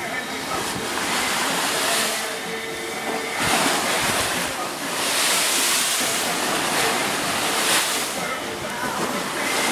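Waves rush and splash against the side of a moving boat.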